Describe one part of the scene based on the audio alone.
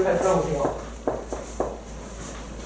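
Chalk taps against a board.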